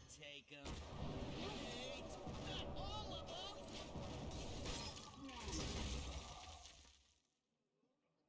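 Game sound effects chime and crash as cards attack.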